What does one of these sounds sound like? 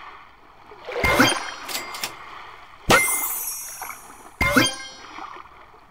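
Short bright chiming game sound effects play in bursts.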